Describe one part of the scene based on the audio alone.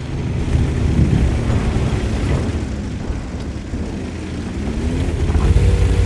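A tank engine rumbles and clanks steadily.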